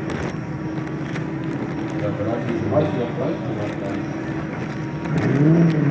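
Racing car engines roar and rev loudly.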